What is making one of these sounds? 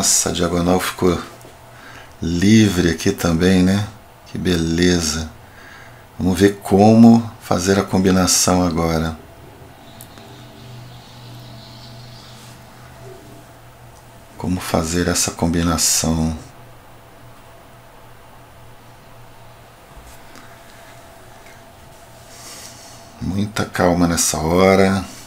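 A middle-aged man speaks calmly and thoughtfully into a close microphone, in bursts with pauses.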